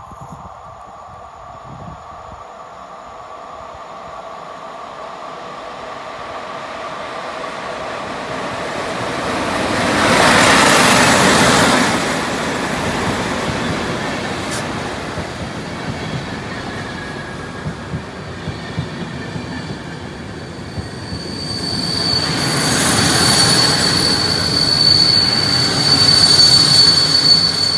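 A train approaches and roars past close by, its wheels clattering and rumbling on the rails.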